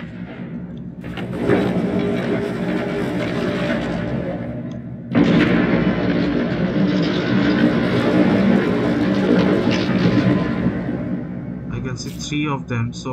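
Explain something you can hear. Large machinery rumbles and groans steadily as a heavy craft slowly lowers.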